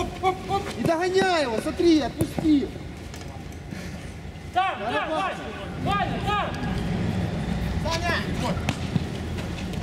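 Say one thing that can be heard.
Men shout to each other outdoors.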